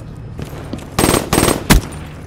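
A gun fires in short, loud bursts.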